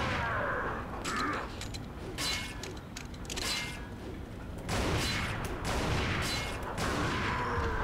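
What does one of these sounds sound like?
A handgun fires single loud shots.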